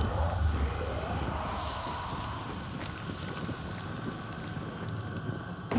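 A flame hisses and roars close by.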